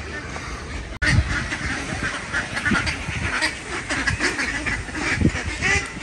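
Ducks quack in a lively chorus nearby.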